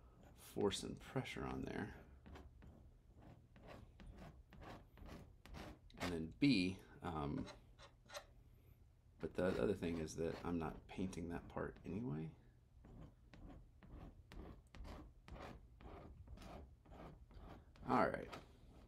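A palette knife scrapes and taps on a canvas.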